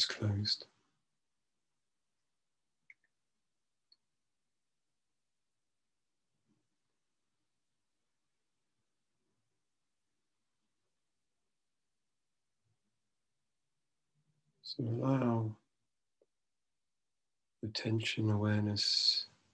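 A middle-aged man speaks slowly and calmly through an online call microphone, with long pauses.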